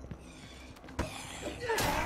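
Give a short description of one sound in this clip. A door swings shut with a thud.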